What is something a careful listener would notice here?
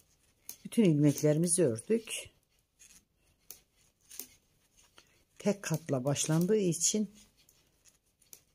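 Knitting needles click softly.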